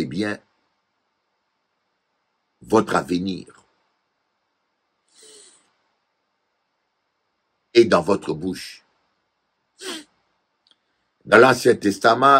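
A middle-aged man speaks calmly into a close microphone, with long pauses.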